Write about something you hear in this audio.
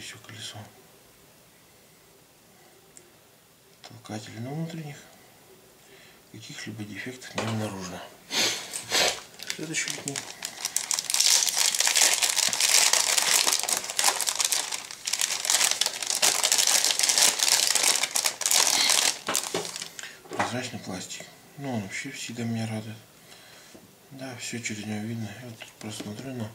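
Plastic parts click softly as hands handle them.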